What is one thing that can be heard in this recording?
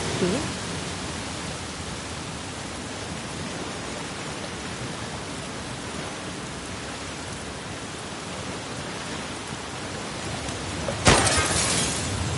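Steady rain falls and patters on water.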